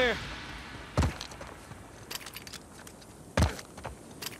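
Heavy punches land with dull thuds.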